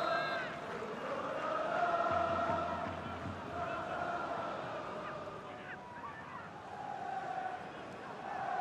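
A large stadium crowd chants and cheers steadily.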